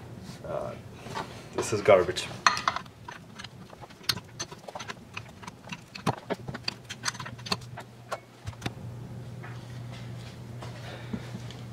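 Metal parts clink and knock.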